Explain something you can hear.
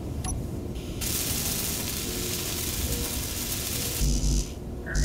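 A welding torch hisses steadily.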